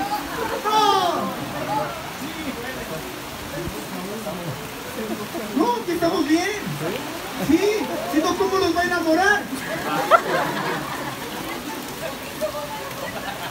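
A young man speaks with animation into a microphone through a loudspeaker.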